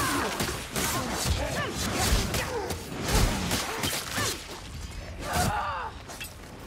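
Swords strike and slash in a rapid melee fight.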